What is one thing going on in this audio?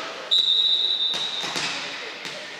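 A referee's whistle blows a short sharp blast in a large echoing hall.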